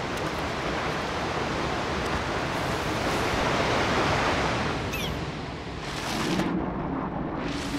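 A waterfall rushes steadily.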